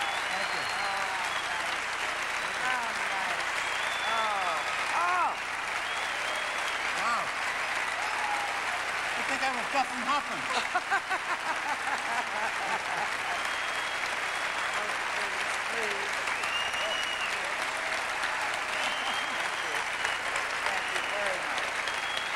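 A crowd applauds steadily in a large hall.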